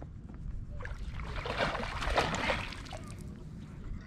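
Water splashes as a net scoops through it.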